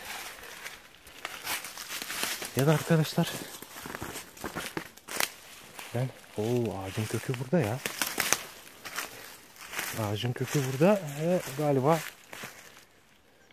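Footsteps crunch and rustle through dry leaves and undergrowth.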